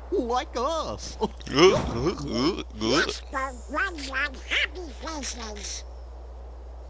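A cartoon duck squawks excitedly in a garbled, raspy voice.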